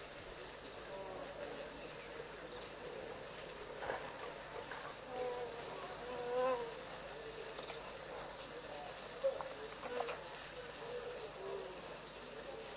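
Wildebeest grunt now and then at a distance outdoors.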